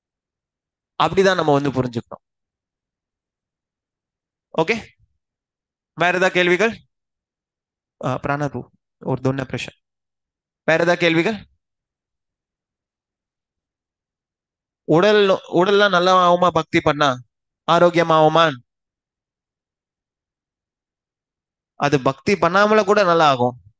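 A man speaks with animation into a headset microphone, heard over an online call, in short bursts with pauses.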